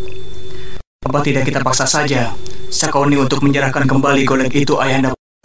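A young man speaks calmly and steadily.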